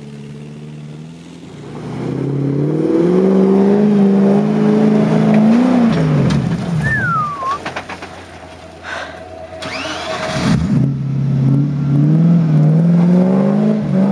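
An engine revs hard and labours close by.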